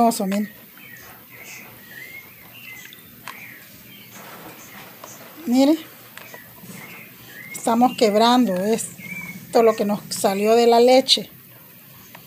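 Wet dough squelches softly as hands knead it.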